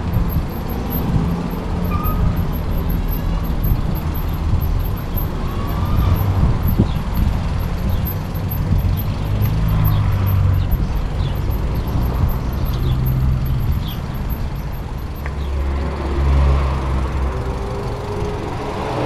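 Bicycle tyres rumble over cobblestones.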